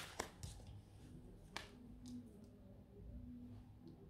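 A card is laid down softly on a table.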